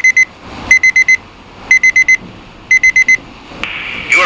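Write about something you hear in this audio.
A small handheld radio beeps in quick bursts of high tones.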